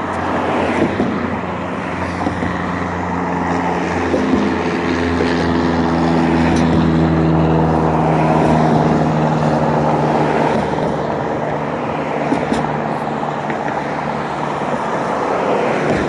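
A car engine hums and rumbles close by.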